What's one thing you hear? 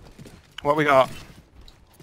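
Gunfire bursts in a video game.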